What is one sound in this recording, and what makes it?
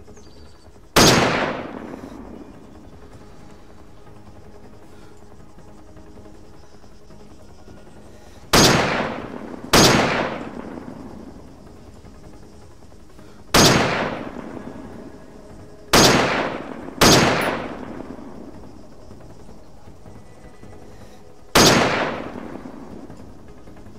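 A rifle fires loud single shots, each followed by a rolling echo.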